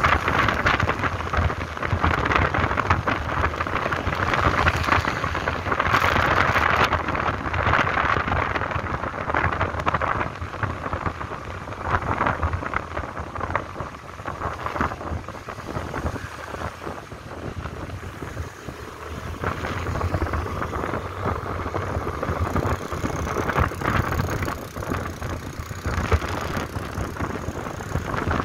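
Wind roars past loudly, as if heard while riding at speed outdoors.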